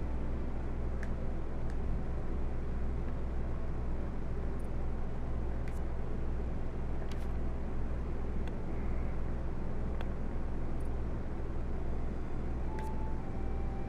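Soft interface clicks sound as menu selections change.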